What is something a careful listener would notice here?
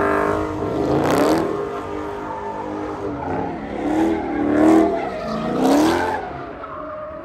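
Tyres screech and squeal on pavement.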